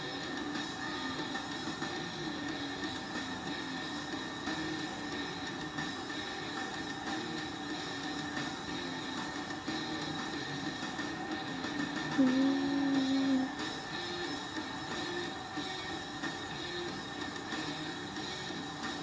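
A large crowd cheers and roars in an arena, heard through a television speaker.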